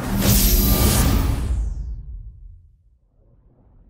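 A console start-up chime swells and fades.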